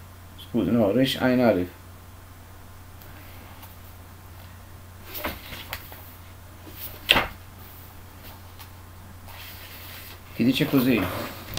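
An elderly man speaks calmly and slowly into a nearby microphone, with long pauses.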